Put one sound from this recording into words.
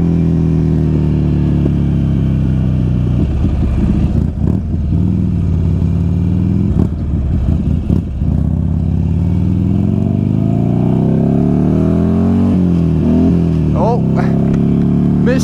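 A motorcycle engine hums, slows down and revs up again.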